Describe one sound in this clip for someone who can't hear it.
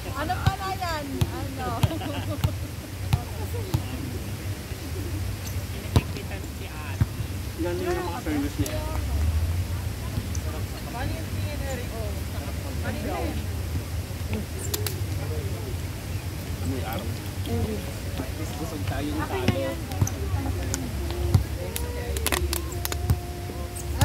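Young people call out and talk to each other outdoors.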